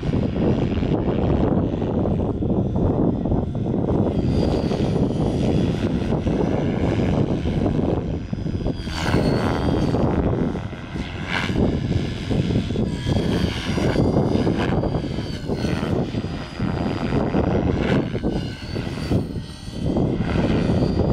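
A model helicopter's motor whines high overhead, rising and falling in pitch.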